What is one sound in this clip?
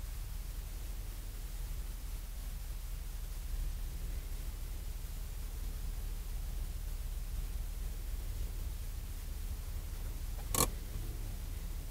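A car engine idles with a low, steady rumble close by.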